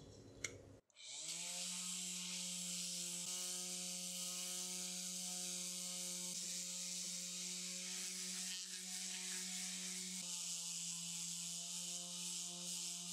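An electric detail sander whirs steadily, sanding a hard surface.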